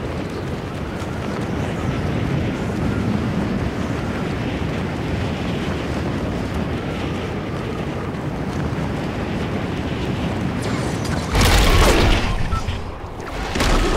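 Wind rushes steadily past during a fall through the air.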